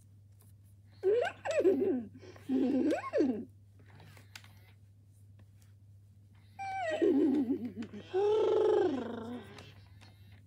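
A toy pony neighs and nickers through a small speaker.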